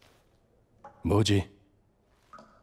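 A man says a few words in a low voice.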